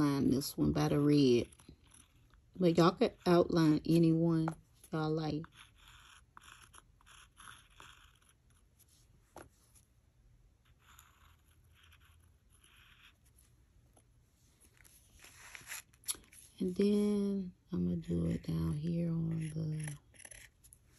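A fine brush softly dabs paint onto a hard surface.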